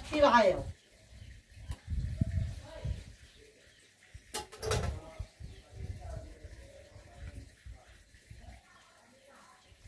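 Water pours and splashes from a bucket.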